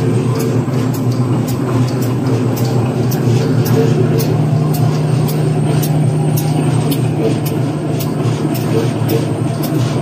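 A machine ticks in a quick, even rhythm.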